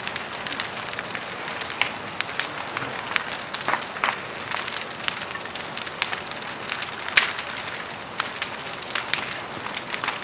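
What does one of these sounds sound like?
Burning wood crackles and pops sharply.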